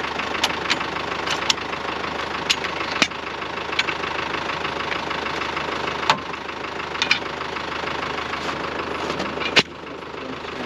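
A metal shovel scrapes and knocks against packed snow.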